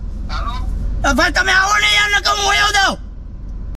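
A middle-aged man sings loudly close by.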